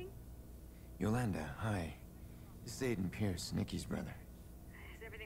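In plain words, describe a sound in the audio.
A man speaks calmly over a phone.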